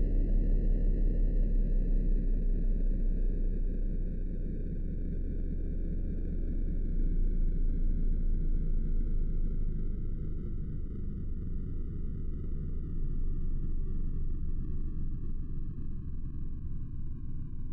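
A siren wails with a low rumble, its pitch slowly falling.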